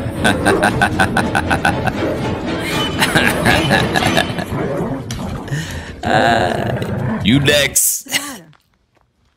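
A man laughs loudly into a microphone.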